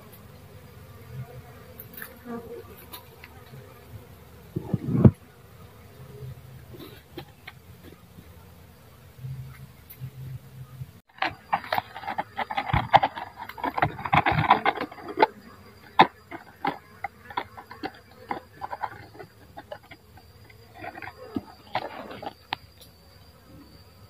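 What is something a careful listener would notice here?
A swarm of bees buzzes up close.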